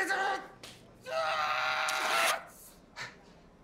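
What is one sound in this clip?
A man shouts in surprise.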